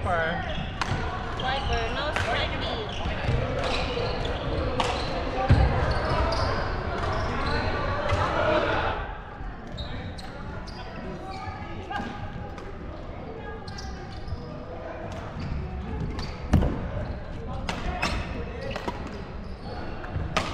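Shuttlecocks pop off badminton rackets in a large echoing hall.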